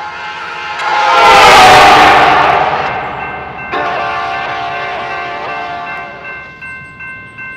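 A train horn blares loudly, then fades.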